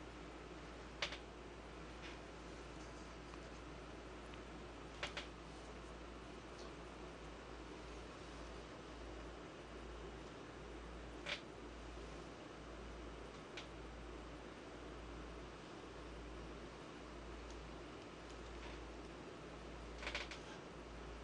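Stones click sharply onto a wooden board now and then.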